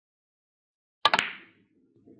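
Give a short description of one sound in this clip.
A cue stick strikes a billiard ball with a sharp click.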